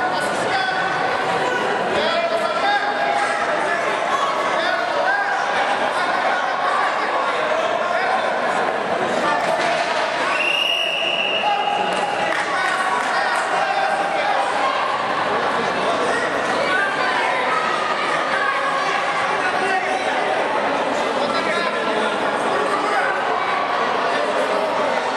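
A crowd of spectators murmurs and calls out in a large echoing hall.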